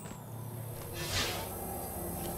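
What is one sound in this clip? A soft whoosh sounds as a game menu opens.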